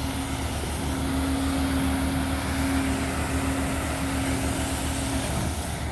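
Gravel rattles as a loader spreads it.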